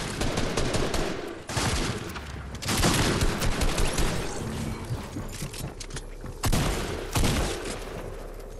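Sharp game gunshots crack in quick bursts.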